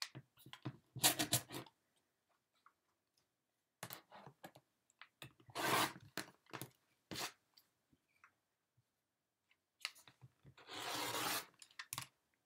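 A rotary blade cuts through fabric with a soft crunch.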